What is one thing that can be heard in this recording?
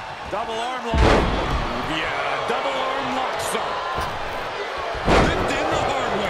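Heavy bodies slam hard onto a wrestling ring mat.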